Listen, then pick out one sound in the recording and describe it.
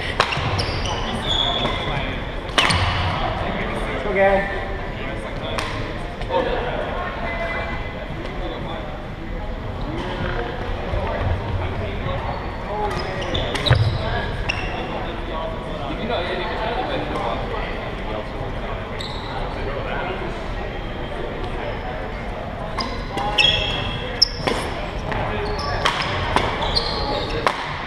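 A crowd of young people chatters in the background.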